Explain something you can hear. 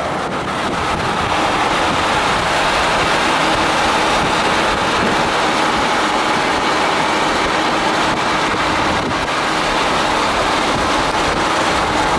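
Tyres roll over a paved road with a steady rush.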